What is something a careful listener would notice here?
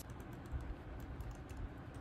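A plastic tape roller clicks as it is pressed.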